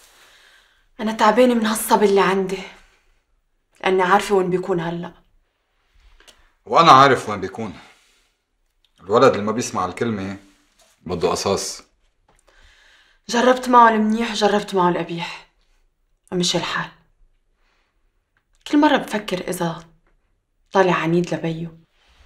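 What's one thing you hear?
A young woman speaks tensely and firmly, close by.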